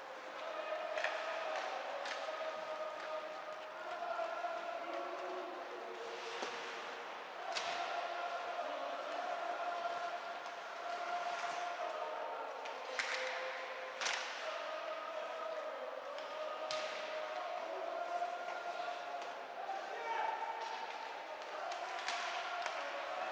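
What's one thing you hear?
Hockey sticks smack a puck with sharp clacks.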